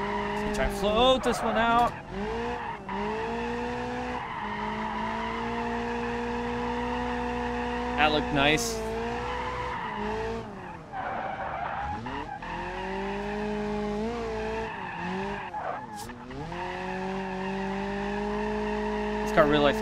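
Tyres squeal on the track in bursts.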